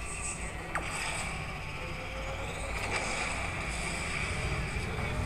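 Racing game car engines roar and whine from a phone speaker.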